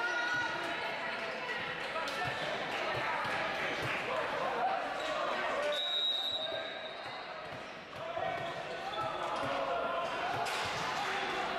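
Young men shout and call out to each other on court.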